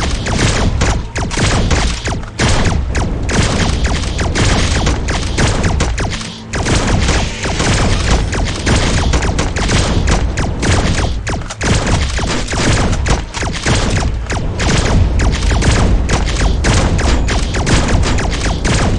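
Guns fire in rapid bursts.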